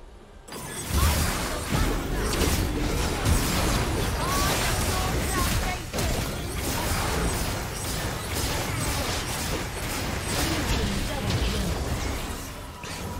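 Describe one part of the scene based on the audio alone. Magic blasts whoosh and crackle in a game battle.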